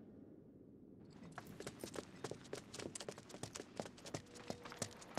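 Quick footsteps run over hard ground.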